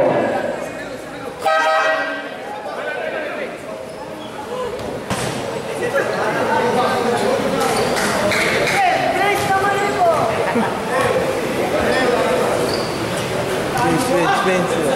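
A crowd of spectators chatters and shouts in an echoing indoor court.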